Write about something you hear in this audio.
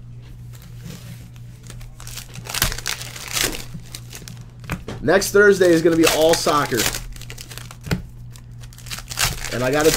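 Plastic-wrapped packs crinkle and rustle in hands.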